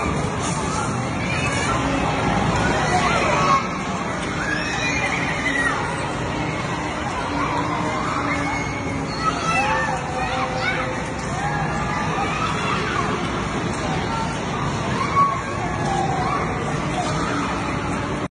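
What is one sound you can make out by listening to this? Children shout and squeal on a spinning ride.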